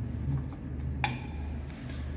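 An elevator call button clicks as it is pressed.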